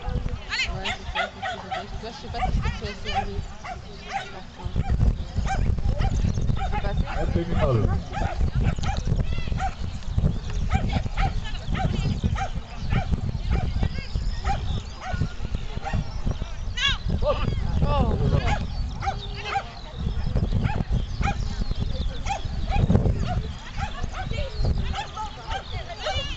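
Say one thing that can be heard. Wind blusters outdoors across an open field.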